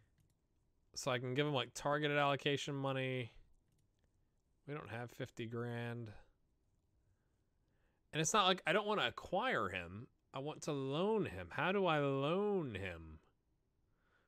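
A man speaks calmly and with animation close to a microphone.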